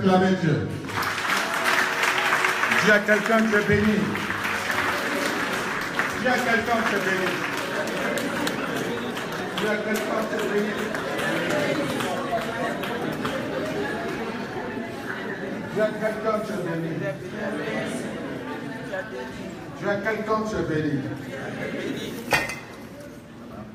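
A crowd of people sings and shouts together.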